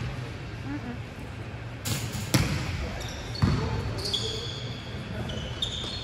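A volleyball is hit with a sharp smack.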